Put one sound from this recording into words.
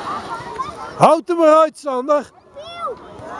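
A young child shouts loudly close by.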